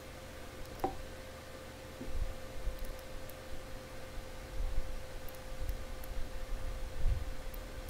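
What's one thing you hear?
Fireworks burst with dull booms in the distance.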